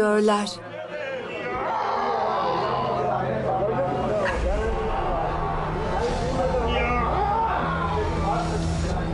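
Several men chant together in a room.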